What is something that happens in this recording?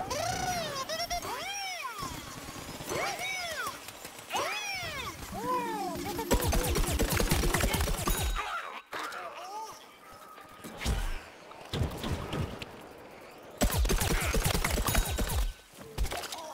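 Cartoonish gunfire pops and zaps in rapid bursts.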